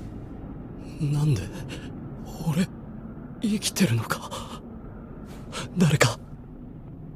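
A young man speaks quietly and tiredly.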